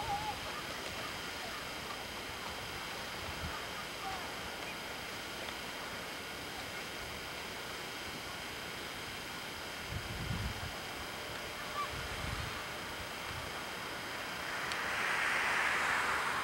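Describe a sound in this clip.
A sled scrapes and hisses over snow.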